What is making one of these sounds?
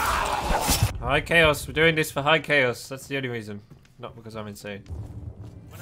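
A young man talks with animation into a headset microphone.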